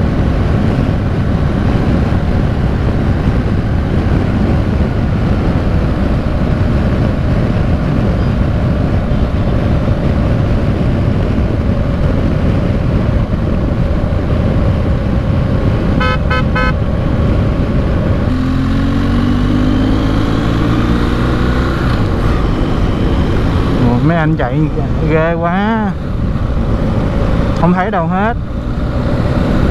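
Wind roars steadily past a moving motorcycle.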